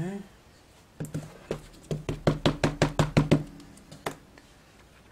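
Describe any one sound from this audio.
An ink pad taps rapidly against a rubber stamp.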